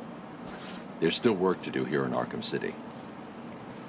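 A man speaks in a deep, low voice.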